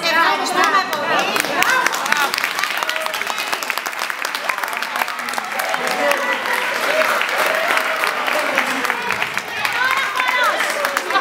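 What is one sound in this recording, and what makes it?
A crowd claps along in rhythm.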